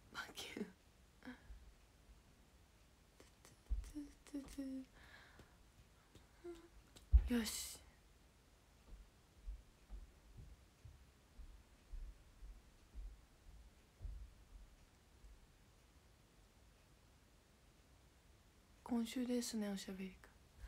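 A young woman speaks softly and haltingly close to a microphone.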